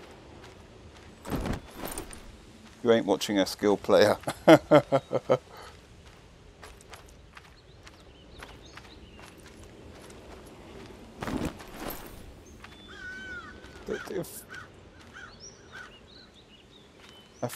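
Footsteps run over soft forest ground.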